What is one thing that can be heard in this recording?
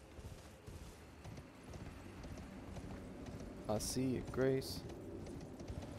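Horse hooves clop on a wooden bridge.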